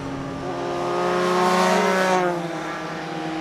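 A motorcycle roars past close by, its pitch dropping as it goes.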